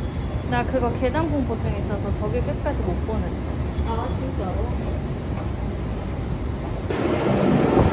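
An escalator hums and rumbles steadily.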